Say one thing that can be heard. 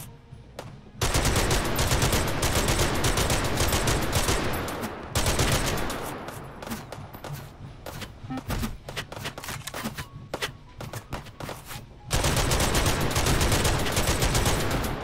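A machine gun fires long, rapid bursts.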